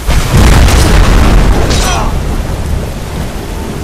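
A fire spell roars loudly in a burst of flames and then fades.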